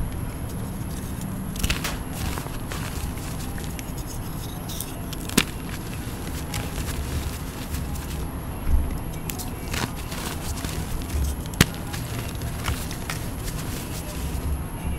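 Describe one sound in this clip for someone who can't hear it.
Hands rustle and pat in soft powder.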